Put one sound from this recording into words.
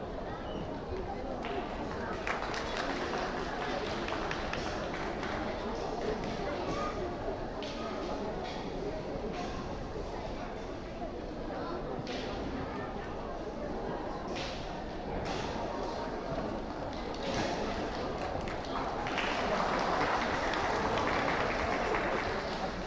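A large crowd murmurs and chatters in an echoing hall.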